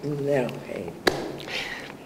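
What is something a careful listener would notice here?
An elderly woman laughs briefly.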